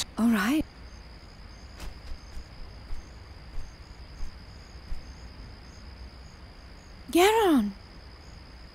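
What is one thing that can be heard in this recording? A bird cries out in short, rising and falling calls.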